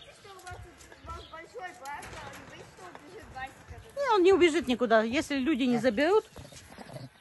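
Monkeys screech and chatter loudly nearby.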